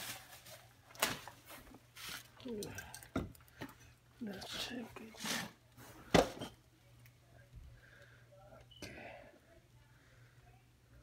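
A rubber air spring thumps and scrapes as hands handle it.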